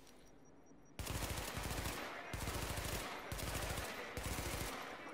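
Loud bursts of automatic gunfire ring out close by.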